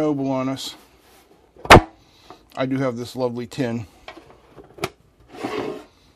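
A metal tin lid clanks as hands open and close it.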